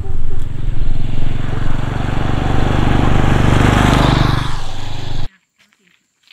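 A motorbike engine approaches and roars past.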